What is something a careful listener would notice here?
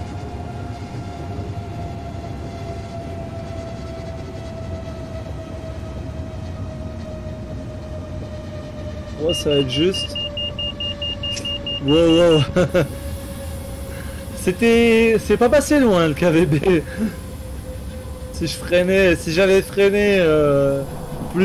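Train wheels rumble steadily over the rails.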